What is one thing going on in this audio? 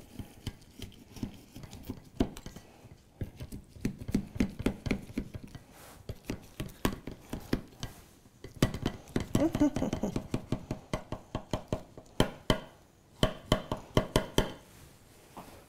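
A knife scrapes around the inside of a metal baking tin.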